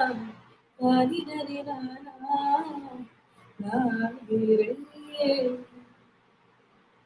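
A young woman sings softly close to a microphone.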